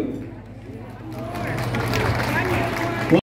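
A crowd of guests murmurs in the background.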